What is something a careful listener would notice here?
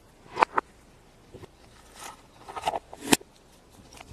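A plastic toy capsule clicks as it is snapped open.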